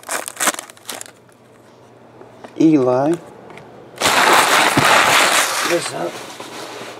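Foil card packs crinkle and rustle in hands.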